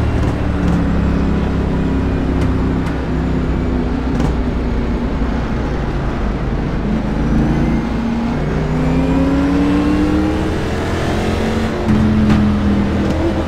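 Other race cars roar past close by.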